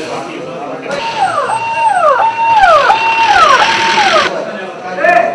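An ambulance siren wails close by.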